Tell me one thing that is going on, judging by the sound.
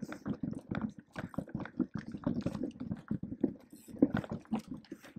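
Mountain bike tyres bump and rattle over a rocky, rooty trail.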